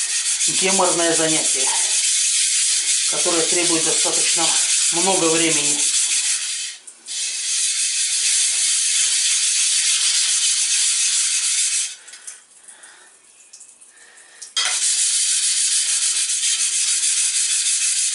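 A sharpening stone grinds back and forth across a hard plate with a rough, steady scraping.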